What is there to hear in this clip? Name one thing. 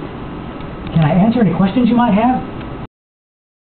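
An elderly man speaks briefly nearby.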